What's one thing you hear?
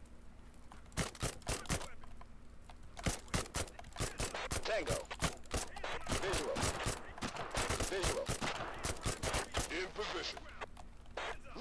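Guns fire in quick, sharp bursts nearby.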